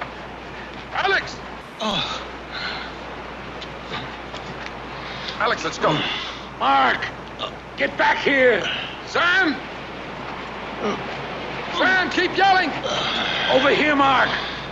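A man groans and cries out in strain.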